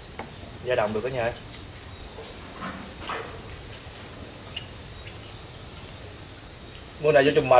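Men talk calmly nearby.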